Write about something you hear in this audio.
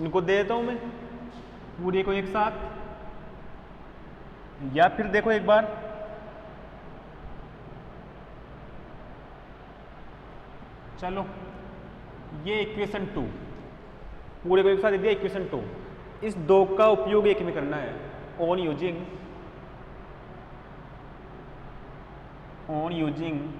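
A young man speaks calmly, explaining in a lecture, with a slight room echo.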